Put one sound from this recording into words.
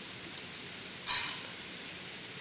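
A metal pot clinks as it is handled.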